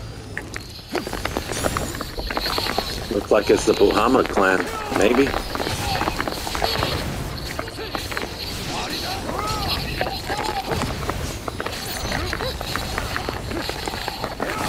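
Fiery blasts roar and crackle in bursts.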